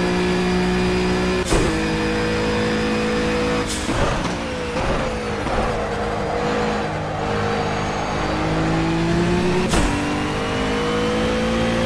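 A racing car engine roars, its pitch rising and dropping with each gear shift.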